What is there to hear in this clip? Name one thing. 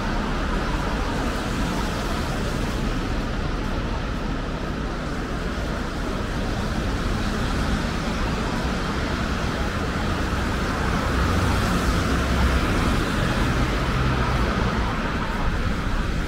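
Street traffic hums and cars drive past on a wet road.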